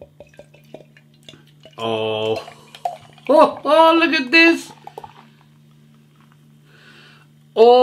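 Beer pours and fizzes into a glass.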